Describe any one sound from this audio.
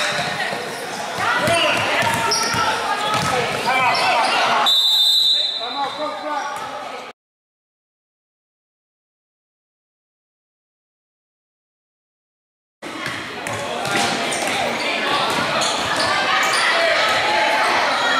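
A crowd of spectators cheers and calls out in an echoing gym.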